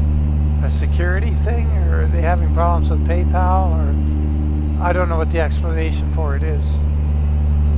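A man talks casually into a microphone.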